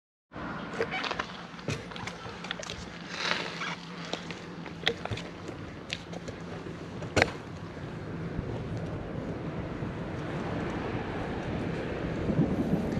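A bicycle rattles and clicks as it rolls along a road.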